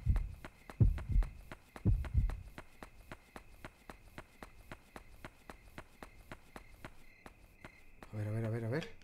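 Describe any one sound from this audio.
Quick footsteps tap steadily.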